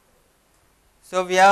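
A young man speaks calmly, close to a microphone.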